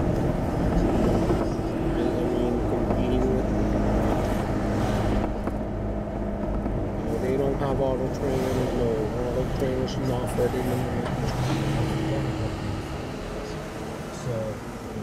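Tyres rumble over the road.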